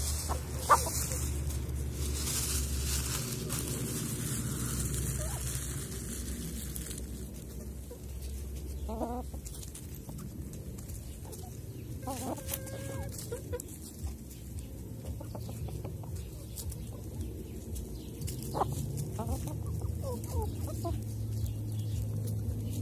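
Hens peck and scratch at dry leaves.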